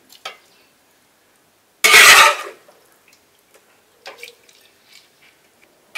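A metal spatula scrapes and clinks against a metal pot.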